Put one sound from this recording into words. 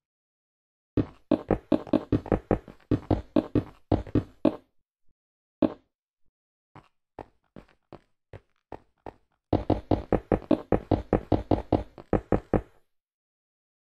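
A pickaxe chips quickly and repeatedly at stone.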